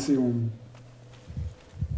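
A sword strikes with a heavy metallic hit.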